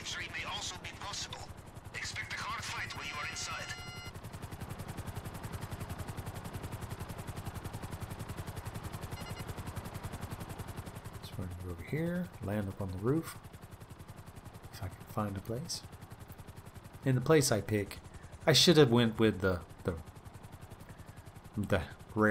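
A helicopter's rotor thumps steadily and rapidly.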